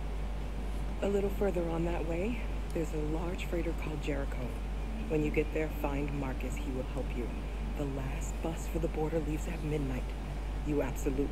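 A woman speaks calmly in a low voice.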